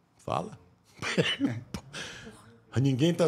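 A middle-aged man laughs close to a microphone.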